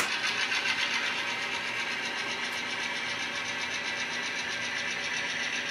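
An N-scale model locomotive hums as it rolls along the track.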